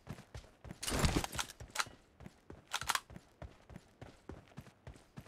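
Footsteps thud quickly and steadily over rocky ground.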